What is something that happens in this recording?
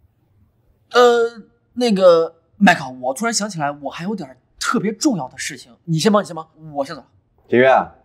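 A young man speaks urgently nearby.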